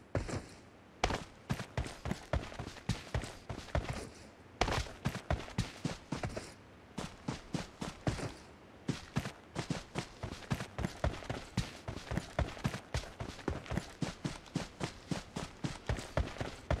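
Footsteps thud quickly and steadily on grass and dirt.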